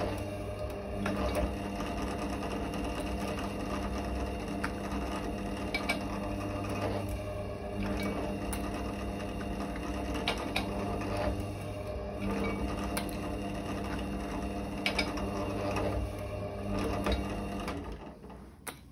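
A drill press motor hums steadily, then stops.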